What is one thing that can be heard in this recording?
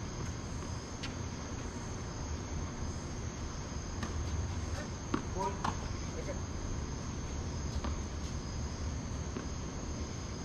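Tennis balls are struck with rackets.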